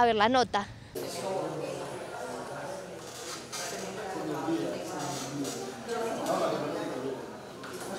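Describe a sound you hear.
Several people murmur and talk quietly in a room.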